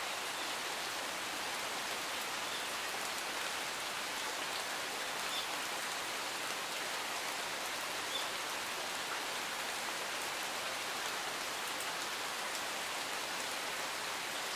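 A stream rushes steadily over rocks.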